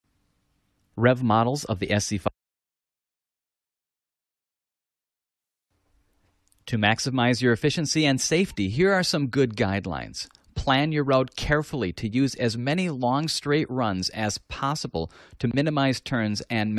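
A man narrates calmly through a microphone.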